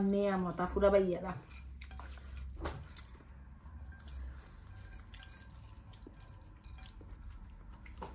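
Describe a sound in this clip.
Fingers mix rice on a plate.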